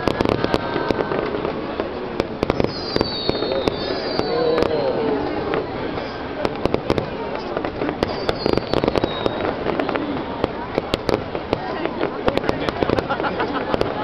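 Fireworks burst with loud bangs, outdoors.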